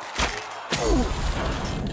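A sword strikes with a sharp, crackling magical blast.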